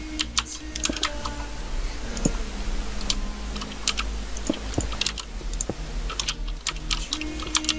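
Blocks break with short crunching knocks.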